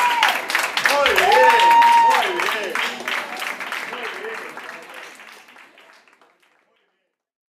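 A crowd of women and men cheers and shouts loudly in a room, then fades away.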